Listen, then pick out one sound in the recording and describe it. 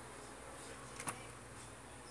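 A keyboard key clicks once.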